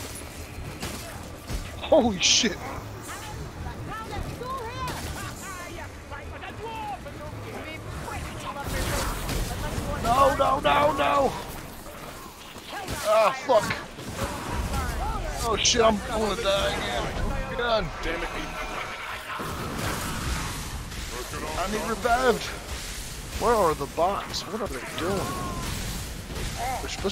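Blades swing and strike with wet thuds.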